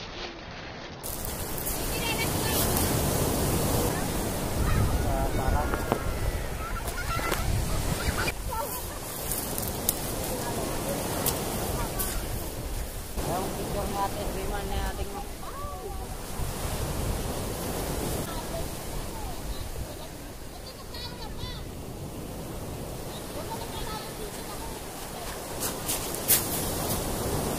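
Children talk and shout excitedly outdoors.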